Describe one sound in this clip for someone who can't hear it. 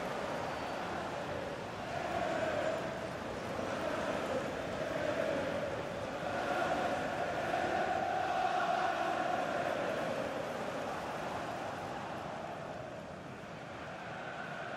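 A large stadium crowd roars and cheers, swelling and fading.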